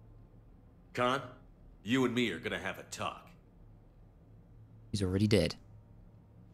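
A man speaks firmly and calmly.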